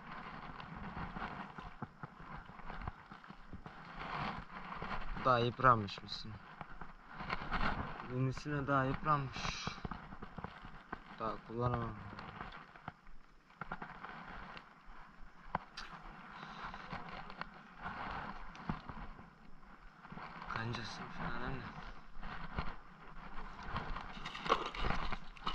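Footsteps crunch on loose gravel and stones.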